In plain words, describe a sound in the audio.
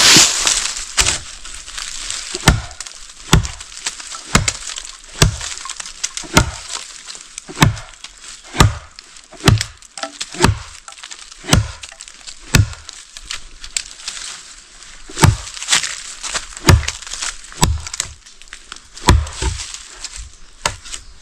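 A machete chops into a wooden branch with sharp, regular blows.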